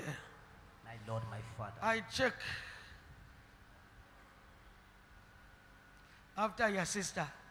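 A man preaches with animation into a microphone, in bursts with pauses.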